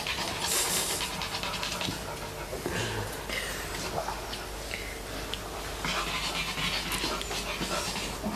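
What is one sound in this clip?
Dogs' paws scuffle on a hard floor.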